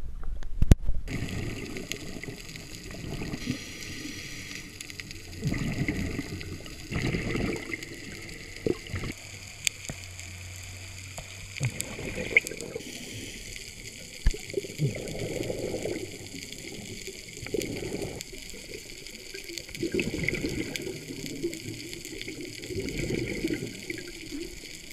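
A scuba regulator hisses and bubbles in rhythmic breaths underwater.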